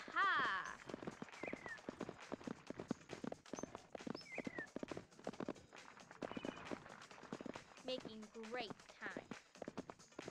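A horse gallops with rhythmic hoof thuds.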